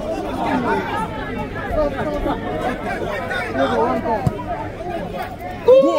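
Spectators chatter and call out nearby.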